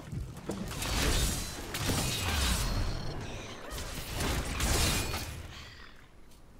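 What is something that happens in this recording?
Magic spells whoosh and crackle in loud bursts.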